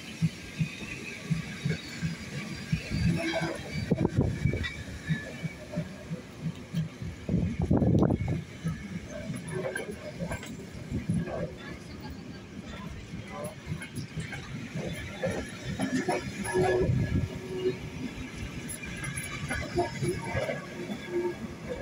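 Passenger coach wheels clatter rhythmically over rail joints as a train rolls past close by.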